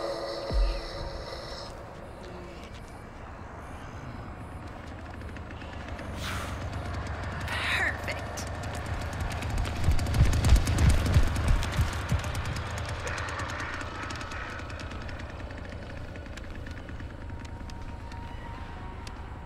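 Footsteps hurry over hard ground.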